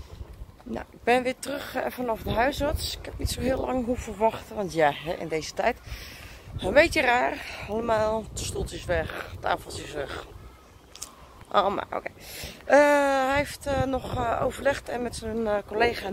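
A woman talks close by, calmly and with animation.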